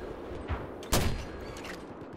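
A mortar fires with a loud thump.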